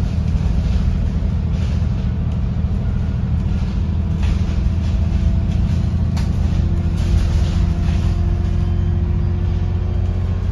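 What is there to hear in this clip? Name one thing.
The bus body rattles and clicks over bumps.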